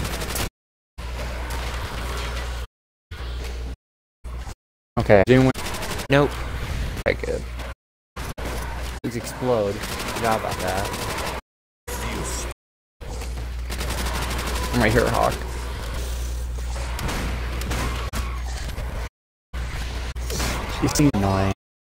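Shotgun blasts go off in quick bursts.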